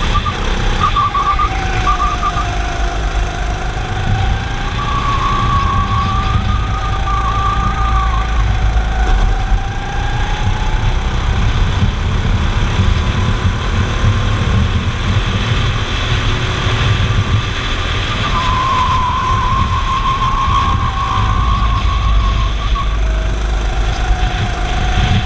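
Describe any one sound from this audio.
A go-kart engine buzzes loudly up close, rising and falling in pitch.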